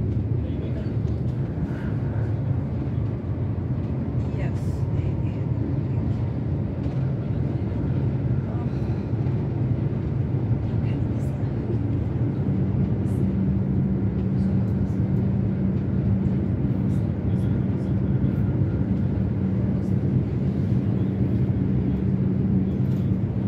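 Wheels click and rattle over rail joints.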